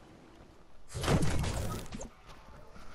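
A pickaxe strikes a tiled roof.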